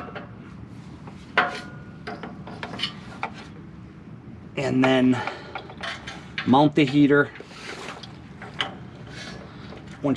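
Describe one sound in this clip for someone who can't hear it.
A metal part clinks and scrapes against metal as it is fitted into place.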